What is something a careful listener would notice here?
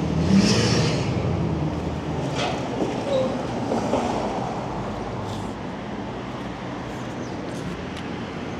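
Wind rumbles past a moving electric bike.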